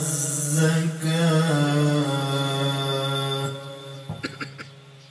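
A man sings a long drawn-out melody into a microphone, loud and close.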